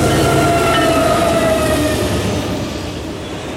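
A diesel locomotive engine roars as it passes and fades.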